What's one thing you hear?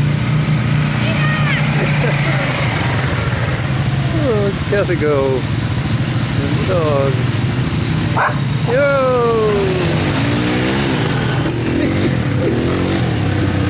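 A quad bike engine revs up and down.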